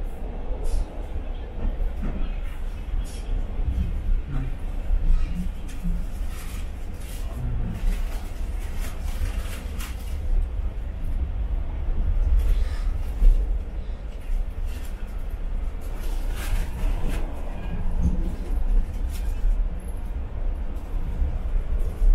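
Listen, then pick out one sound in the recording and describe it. A commuter train rumbles along the track at speed, heard from inside a passenger car.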